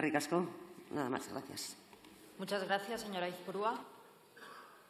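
A middle-aged woman speaks formally into a microphone in a large hall.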